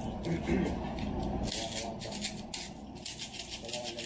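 A plastic cap clicks and rattles in a man's hands.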